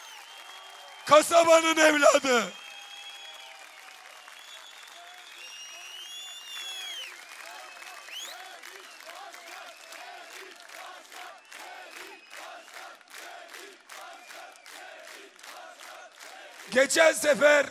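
A crowd cheers and whistles outdoors.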